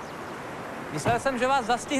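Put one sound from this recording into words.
A man speaks outdoors.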